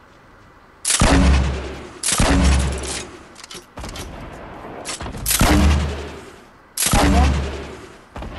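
A gun fires single heavy shots.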